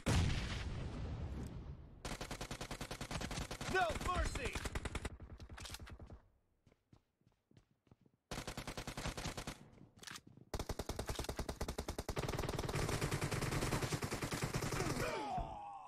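Automatic rifle fire rattles in a video game.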